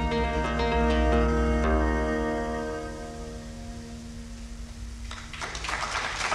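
A lute is plucked in accompaniment.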